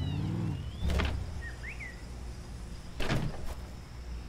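A car door opens and shuts with a thud.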